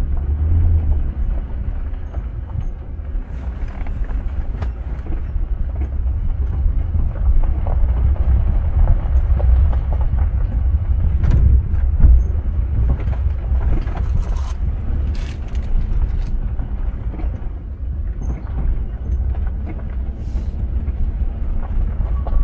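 Tyres crunch over a dirt and gravel road.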